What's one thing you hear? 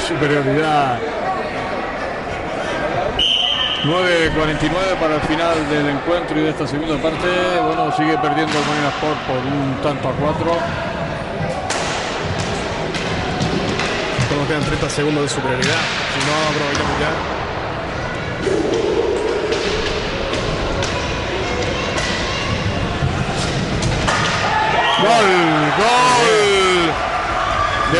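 Hockey sticks clack against a ball and each other in a large echoing hall.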